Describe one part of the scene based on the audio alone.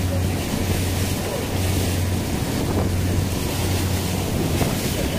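Water splashes and rushes along a boat's hull.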